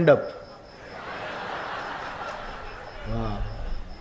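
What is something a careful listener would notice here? A crowd laughs.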